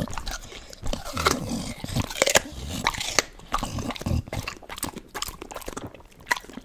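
A dog snorts and breathes heavily close by.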